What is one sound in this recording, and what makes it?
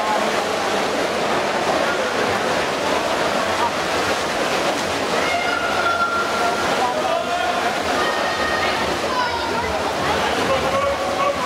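Swimmers splash and churn the water.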